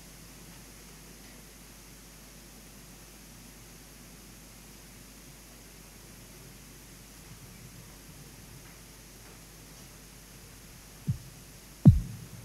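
A man speaks faintly at a distance.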